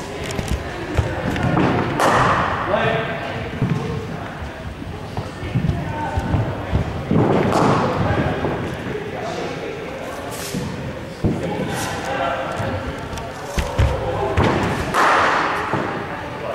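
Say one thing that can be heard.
A cricket bat strikes a ball with a sharp crack in an echoing hall.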